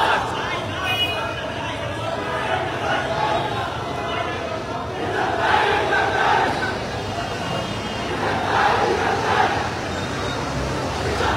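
A large crowd of men cheers and shouts loudly outdoors.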